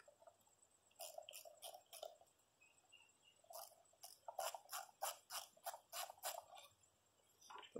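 A file scrapes along a blade in quick repeated strokes.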